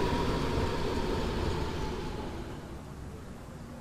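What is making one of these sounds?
A loud hiss of air fades away.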